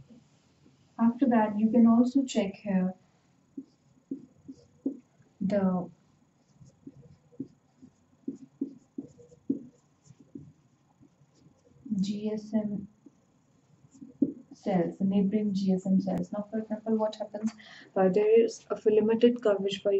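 A young woman speaks calmly, as if teaching, close to a microphone.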